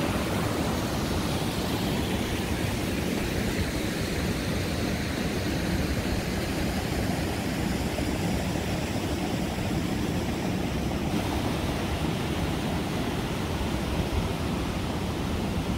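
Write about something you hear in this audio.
Wind blows across an open outdoor space.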